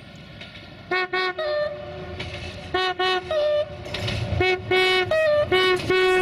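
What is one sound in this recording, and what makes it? A train horn sounds in loud repeated blasts.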